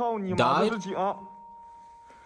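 A young man speaks with surprise close to a microphone.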